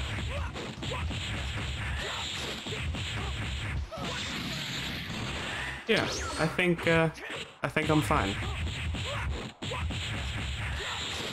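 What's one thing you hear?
Punches and kicks land with quick, heavy thuds.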